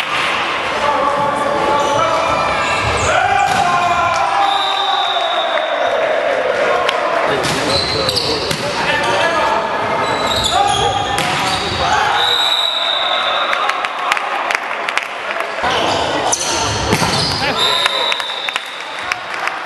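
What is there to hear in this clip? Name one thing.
Young men shout and call out to each other across the hall.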